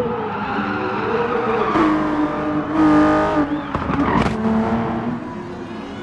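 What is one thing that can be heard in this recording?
A racing car engine roars loudly as it speeds past close by.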